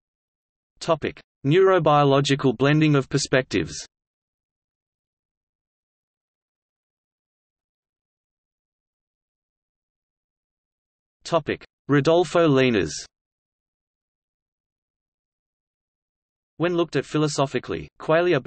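A man speaks calmly in short bursts, close by.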